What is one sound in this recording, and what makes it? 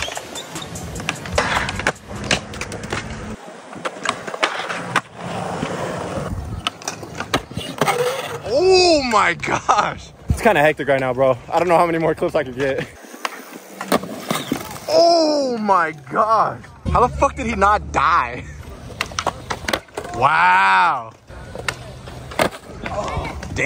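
A skateboard clacks and snaps against the ground.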